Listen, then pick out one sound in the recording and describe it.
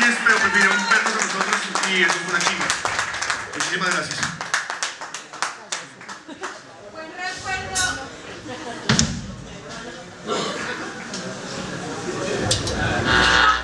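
A rock band plays loudly.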